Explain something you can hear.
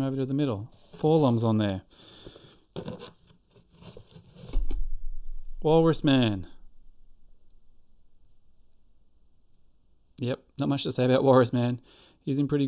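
A middle-aged man talks with animation into a close microphone.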